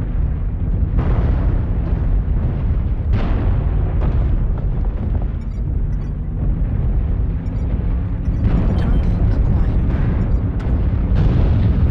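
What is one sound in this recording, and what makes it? Weapons fire in sharp bursts with explosions.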